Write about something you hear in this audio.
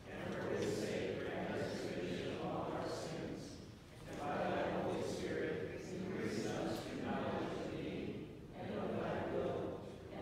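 A man speaks slowly and solemnly through a microphone in a large echoing hall.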